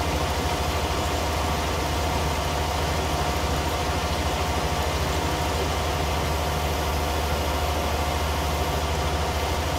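A harrow rattles as it drags through soil.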